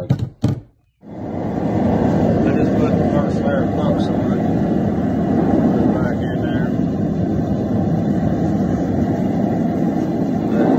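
A gas forge roars steadily.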